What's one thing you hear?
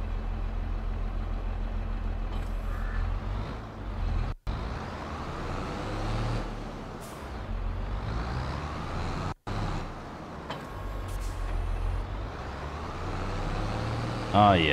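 A tractor engine rumbles steadily and revs as it drives.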